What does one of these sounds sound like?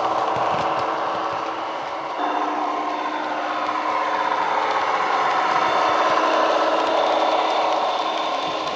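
A model train's motor hums and whines as the train approaches.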